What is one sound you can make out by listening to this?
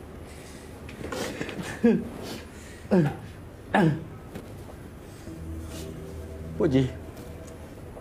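An elderly man speaks in slow, strained, drawn-out phrases.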